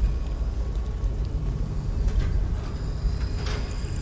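A metal locker door creaks open.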